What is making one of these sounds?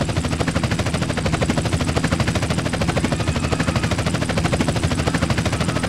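Helicopter rotor blades chop rapidly and steadily overhead.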